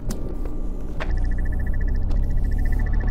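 An energy beam buzzes with a fast, steady pulse.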